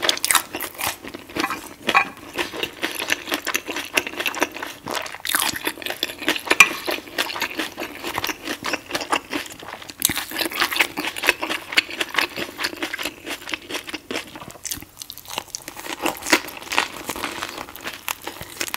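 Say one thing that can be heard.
A spring roll wrapper crinkles softly as a woman bites into it.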